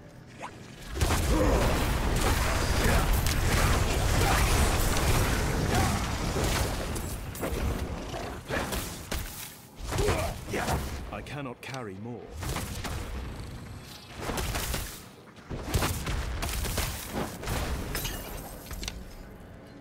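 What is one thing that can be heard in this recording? Fire spells roar and crackle in bursts.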